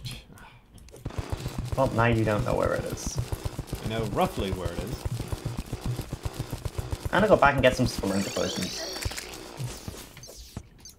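Video game attack sound effects go off in quick succession.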